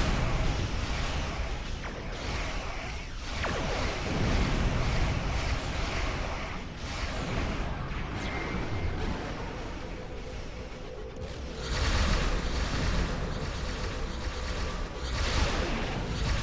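Spaceship weapons fire with zapping blasts.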